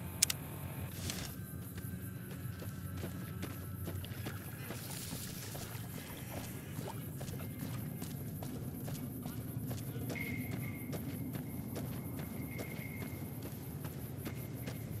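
Footsteps crunch on gravel as someone runs.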